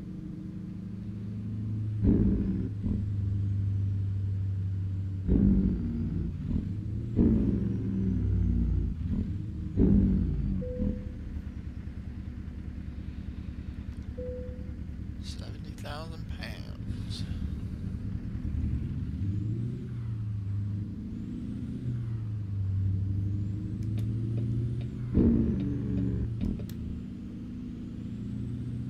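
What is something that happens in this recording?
A truck's diesel engine rumbles steadily and rises and falls in pitch.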